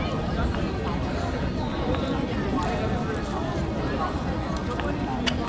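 Wind blows across an open square.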